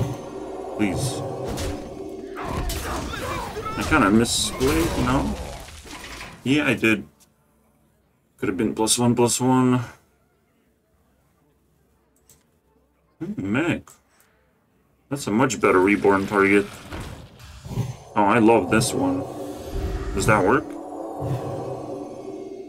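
A magical sparkling effect chimes as a card is played.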